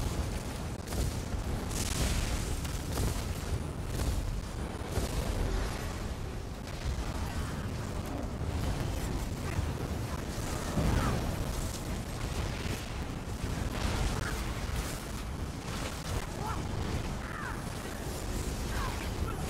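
Weapons clash and strike in a game battle.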